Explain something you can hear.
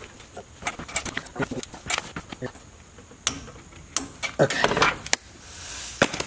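Gloved hands rustle and knock against metal parts.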